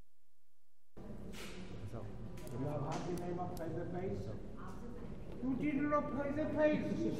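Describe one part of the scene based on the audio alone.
An elderly man talks calmly up close.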